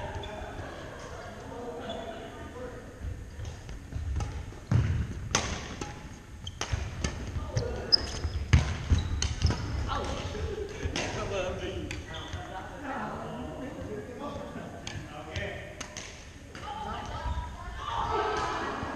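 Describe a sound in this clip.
Men call out to each other across an echoing hall.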